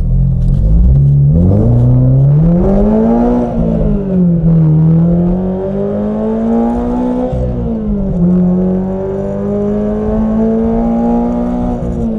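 A car engine revs up and down in pitch as it speeds up and shifts gears.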